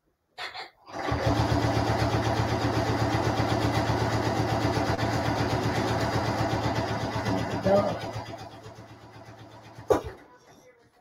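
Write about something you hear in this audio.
A sewing machine stitches with a fast, steady rattle.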